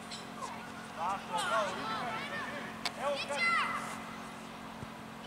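Young players shout across an open outdoor field.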